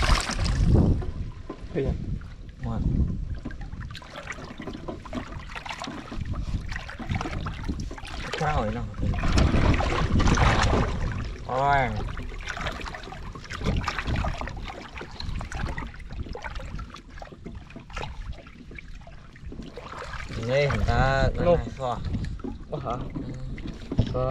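Hands splash and slosh through shallow muddy water.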